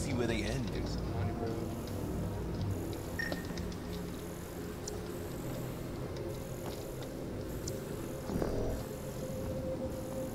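A scanning device hums steadily.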